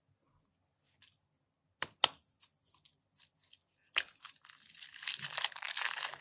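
Plastic bags crinkle and rustle as hands squeeze them.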